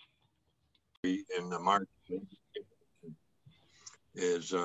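An elderly man speaks with animation over an online call.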